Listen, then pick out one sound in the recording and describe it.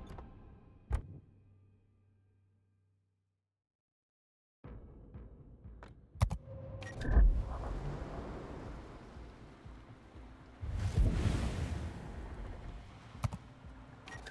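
A menu button clicks a few times.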